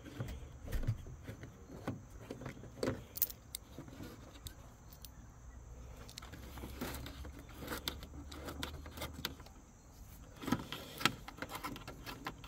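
Plastic clips click and snap as they are pried loose.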